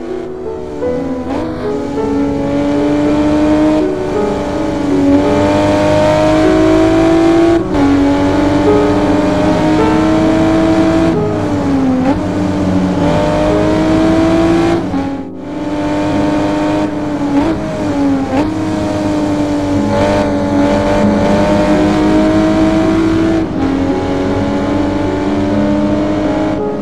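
A sports car engine roars and revs, its pitch rising and dropping with gear changes.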